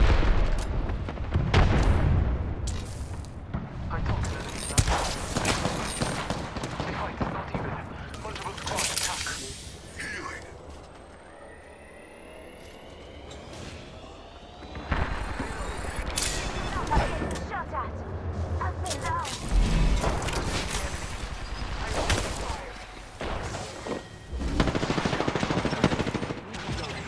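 Gunshots crack in short bursts with some echo.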